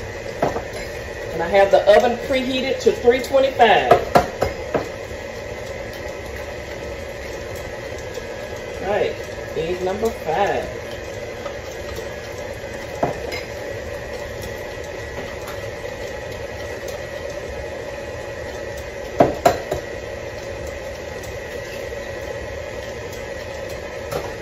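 A stand mixer whirs steadily as it beats batter.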